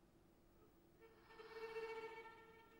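A violin plays a long, held note in an echoing hall.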